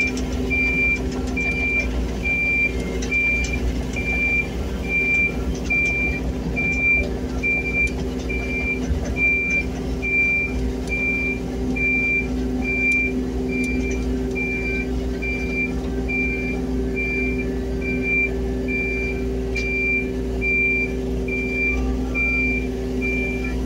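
A diesel engine drones steadily close by.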